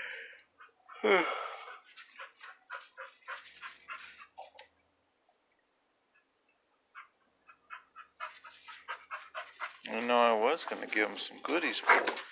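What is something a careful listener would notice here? A dog whines.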